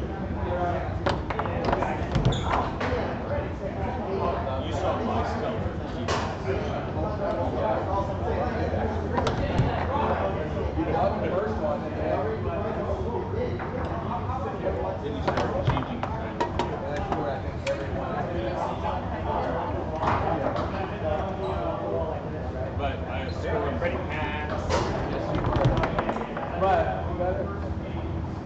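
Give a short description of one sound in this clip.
A foosball ball clacks sharply against the rods and the table walls.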